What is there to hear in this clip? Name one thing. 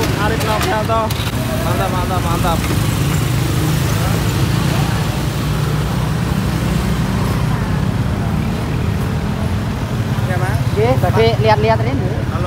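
A scooter engine idles and rumbles nearby.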